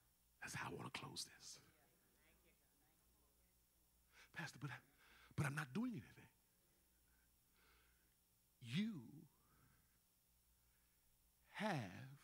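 A man preaches with passion into a microphone, in loud bursts with pauses between them.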